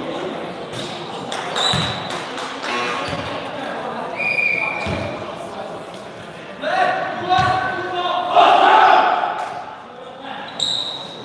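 A crowd of young spectators chatters and calls out nearby.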